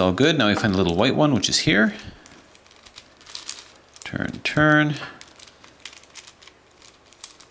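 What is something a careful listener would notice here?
Plastic puzzle pieces click and clack as they are twisted.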